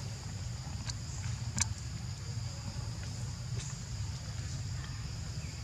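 A young monkey chews and smacks softly on food.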